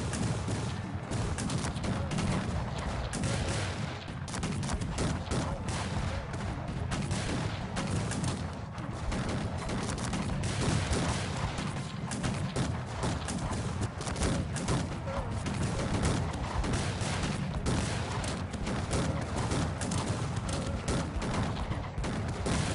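Musket fire crackles and pops rapidly in a large battle.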